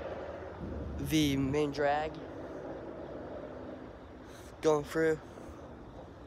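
A young man speaks close to the microphone with animation.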